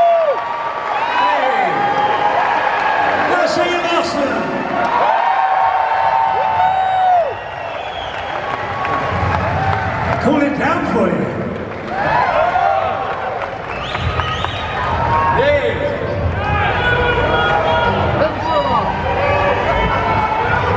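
A man sings loudly into a microphone over a loudspeaker system in a large echoing hall.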